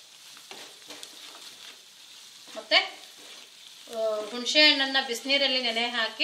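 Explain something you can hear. A spatula scrapes and stirs food in a pan.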